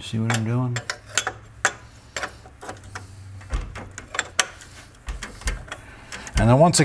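A metal wrench clinks and ratchets against a bolt.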